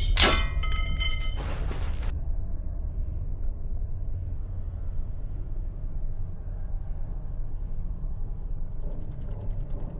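Armoured footsteps thud slowly on stone.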